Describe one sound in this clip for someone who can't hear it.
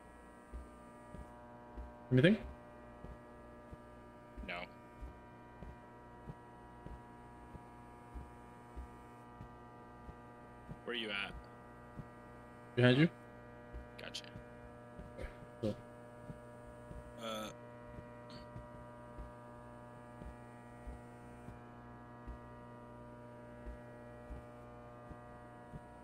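Fluorescent lights hum steadily.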